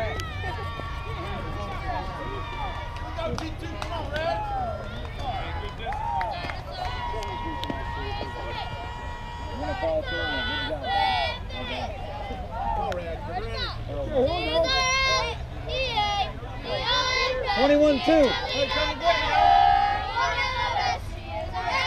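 Young girls shout and cheer across an open field.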